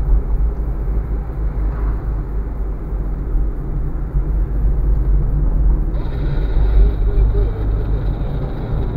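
A car engine hums steadily with road rumble from inside the cabin.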